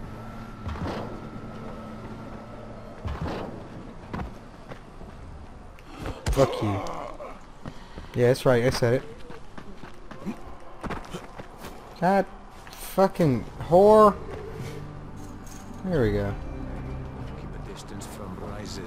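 Footsteps thud quickly while running and climbing.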